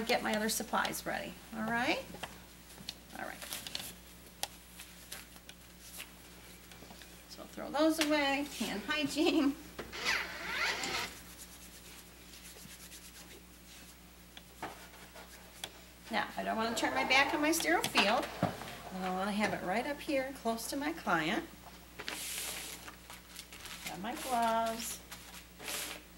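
A middle-aged woman speaks calmly and clearly, as if explaining, in pauses.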